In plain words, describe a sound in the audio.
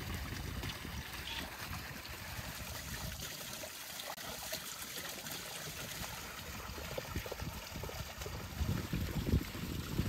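Hands rinse meat in a basin of water with wet sloshing.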